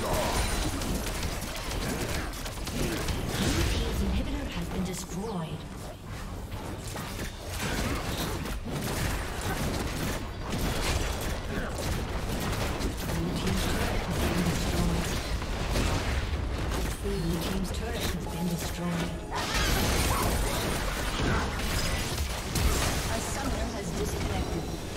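Video game spells and weapons crackle and clash in a busy fight.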